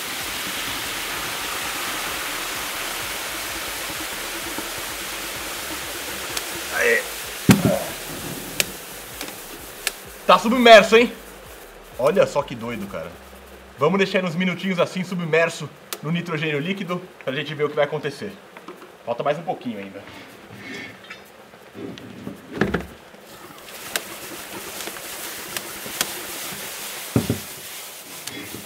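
Water gushes and fizzes loudly into a tub.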